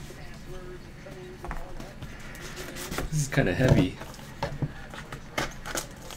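A cardboard lid slides off a box with a soft scrape.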